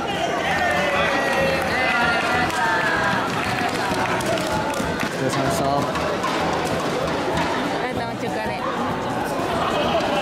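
A crowd of young people chatters and calls out in a large echoing hall.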